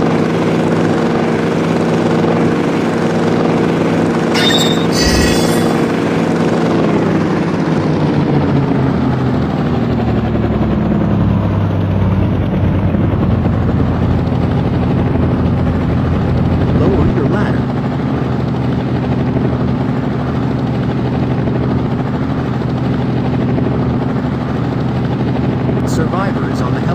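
A helicopter's rotor and engine drone steadily, dropping in pitch and then holding.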